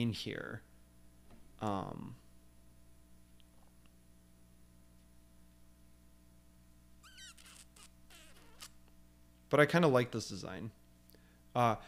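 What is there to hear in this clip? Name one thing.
A man speaks calmly into a close microphone, in short bursts with pauses.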